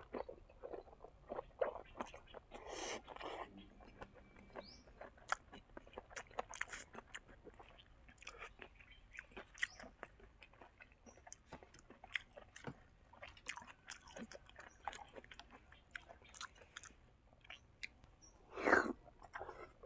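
A young man chews and smacks his lips loudly, close to a microphone.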